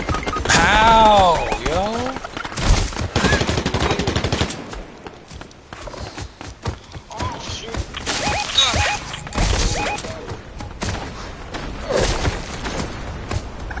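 Heavy feet thud quickly as a large animal runs through grass and brush.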